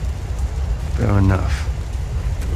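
A man answers in a short, low, hard voice.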